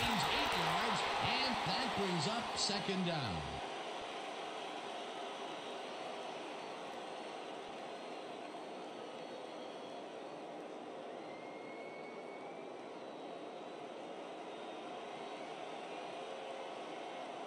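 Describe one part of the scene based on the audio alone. A large crowd roars and cheers in a stadium, loudest at first and then settling to a steady murmur.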